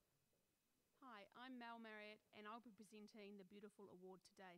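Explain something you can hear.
A woman speaks calmly over a microphone and loudspeakers in a large echoing hall.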